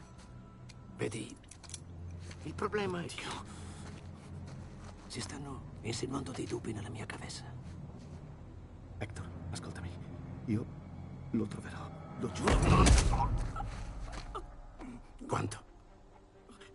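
A man speaks tensely in a low voice.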